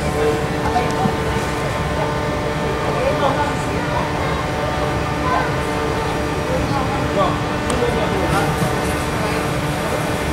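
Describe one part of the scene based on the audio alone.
A crowd of children and adults chatter and call out nearby in a large echoing hall.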